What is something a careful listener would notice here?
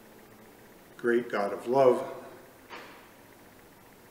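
An older man speaks a few words calmly and close by, in a softly echoing room.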